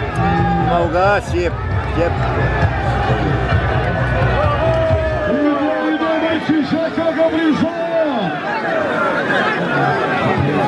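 A large outdoor crowd chatters and shouts excitedly.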